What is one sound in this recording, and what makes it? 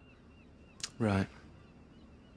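A young man gives a short, low reply close by.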